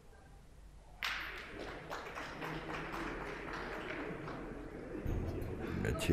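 Spectators clap and applaud.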